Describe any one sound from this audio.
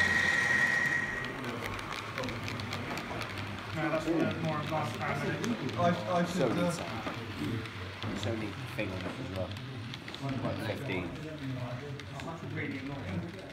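A model train rattles along the track.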